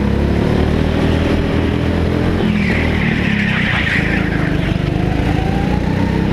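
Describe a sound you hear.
Other go-kart engines whine nearby.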